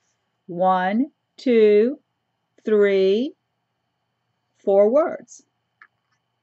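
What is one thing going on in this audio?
An elderly woman reads aloud slowly and expressively, close to a microphone.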